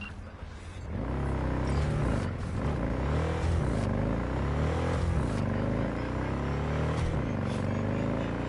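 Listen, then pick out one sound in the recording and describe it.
A motorbike engine hums and revs.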